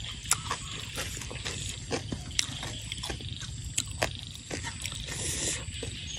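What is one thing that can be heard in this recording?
A metal spoon scrapes through food on a plate.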